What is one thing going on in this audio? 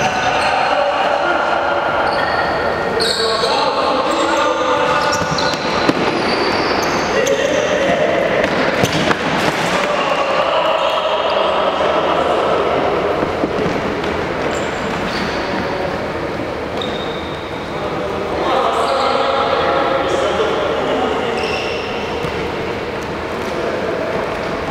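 Young men shout and call out to each other across a large echoing hall.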